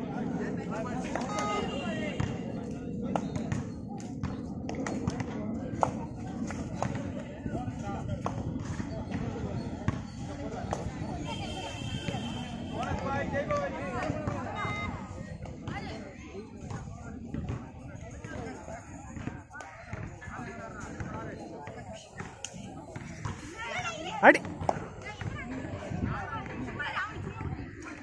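A crowd of young spectators chatters and shouts outdoors.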